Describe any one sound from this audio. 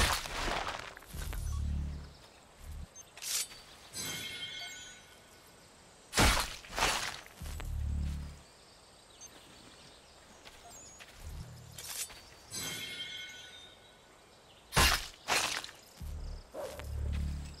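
A knife slices wetly through flesh, again and again.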